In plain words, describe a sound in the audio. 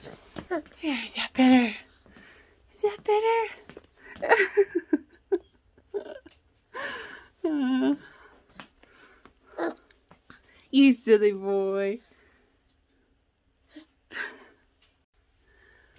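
A baby babbles and squeals close by.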